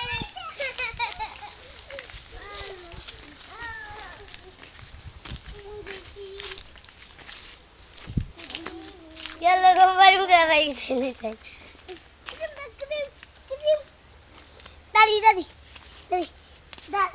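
Young children talk and call out nearby.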